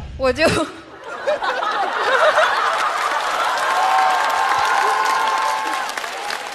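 An audience laughs and cheers in a large hall.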